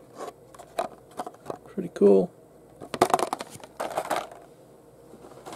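Plastic packaging crinkles and rustles in hands.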